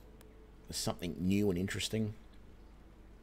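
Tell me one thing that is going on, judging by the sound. A man speaks briefly and calmly into a nearby microphone.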